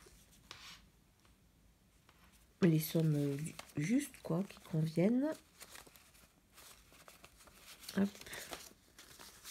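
Paper banknotes rustle and flick as hands count them.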